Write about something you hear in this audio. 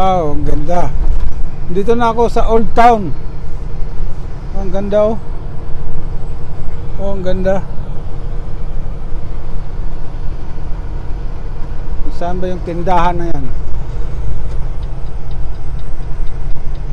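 A diesel semi-truck drones low while cruising on a highway, heard from inside the cab.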